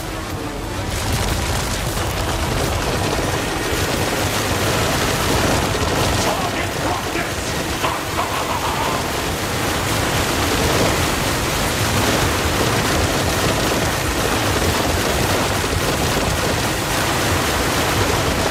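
Magical blasts roar and crackle loudly.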